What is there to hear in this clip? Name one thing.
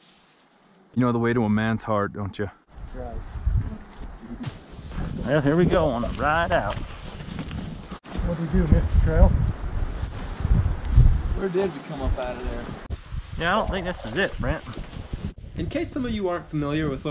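A man talks outdoors, close by and casually.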